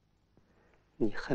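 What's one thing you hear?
A middle-aged man speaks softly.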